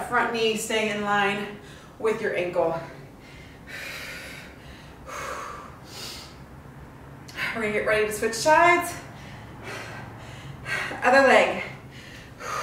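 A young woman talks up close, brightly and with energy, in short bursts.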